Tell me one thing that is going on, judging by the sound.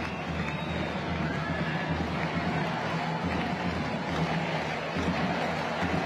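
A crowd murmurs and cheers in the background.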